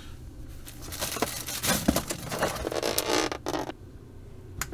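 A plastic food container crackles and rustles as it is handled.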